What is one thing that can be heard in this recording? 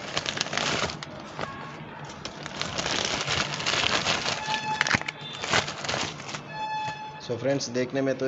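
Plastic packaging crinkles and rustles as it is torn open.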